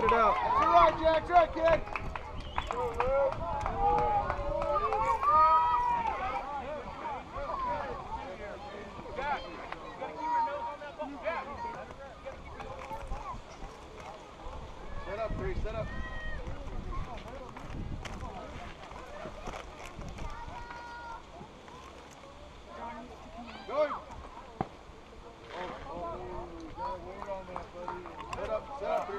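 Children and adults call out and cheer across an open field.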